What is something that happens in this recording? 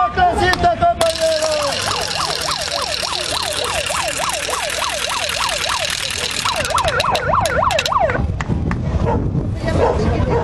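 A man shouts through a megaphone.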